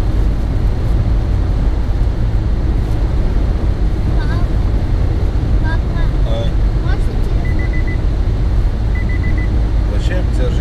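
Tyres rumble loudly on the road from inside a moving car.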